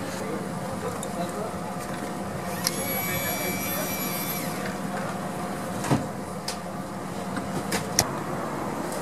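A stretcher rattles as paramedics load it into an ambulance.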